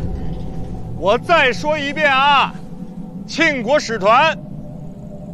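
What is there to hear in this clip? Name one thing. A young man shouts loudly outdoors.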